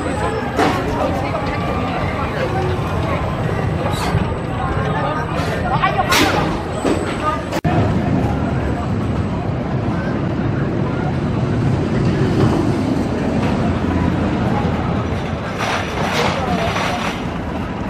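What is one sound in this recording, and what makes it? A roller coaster train rumbles along its track.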